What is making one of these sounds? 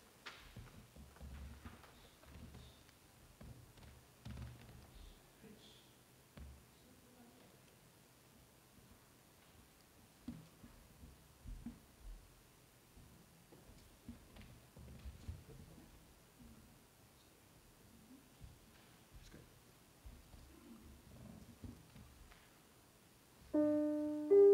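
An elderly man speaks quietly into a microphone.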